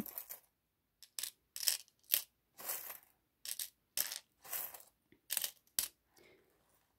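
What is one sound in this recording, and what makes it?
Paper rustles softly in short bursts.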